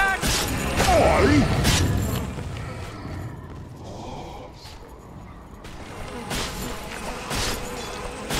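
Magic spells whoosh and burst in a fight between game characters.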